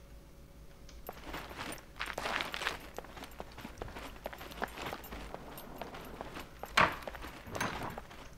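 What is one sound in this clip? Footsteps walk on hard ground.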